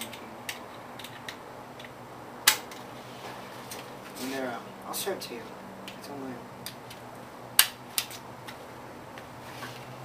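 A guitar knocks and clicks as it is handled.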